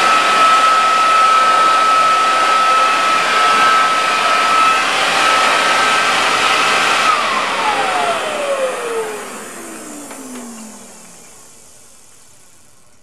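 A leaf blower roars loudly, then winds down and fades.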